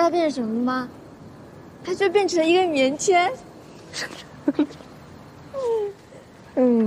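A young woman speaks playfully and with animation, close by.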